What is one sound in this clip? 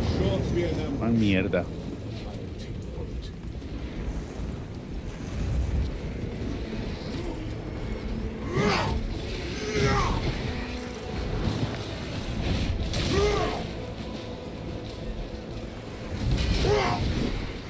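Monstrous creatures screech and snarl.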